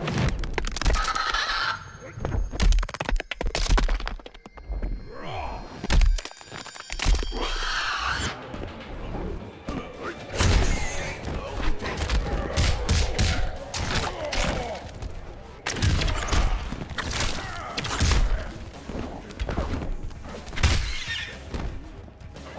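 Heavy punches and kicks land with loud thuds and cracks.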